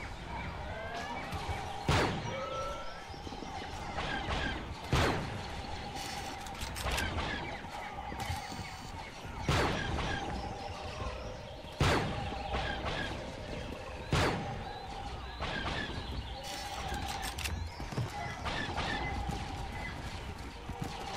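Blaster fire zaps and whines again and again.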